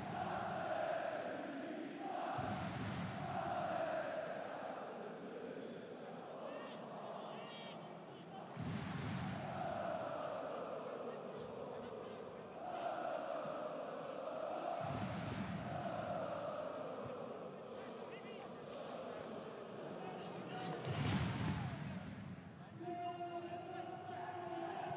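A large stadium crowd chants and sings loudly.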